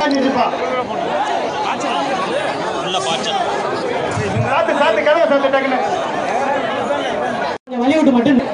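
Young men shout excitedly close by.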